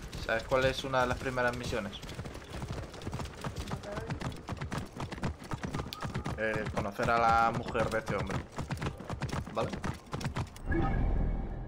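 Horse hooves clop on rocky ground.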